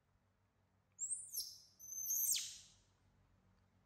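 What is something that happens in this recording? A young macaque squeals shrilly.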